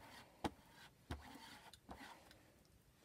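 A foam applicator taps and dabs against a plastic stencil.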